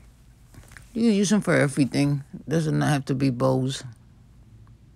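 A woman speaks calmly close to the microphone.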